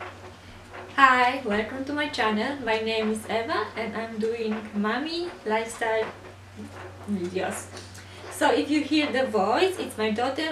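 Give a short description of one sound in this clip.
A young woman talks calmly and clearly into a close microphone.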